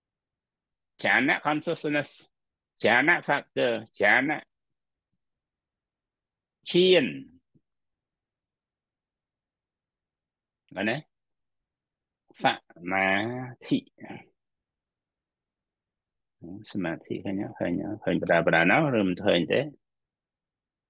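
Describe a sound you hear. A middle-aged man speaks calmly in short phrases, heard through an online call.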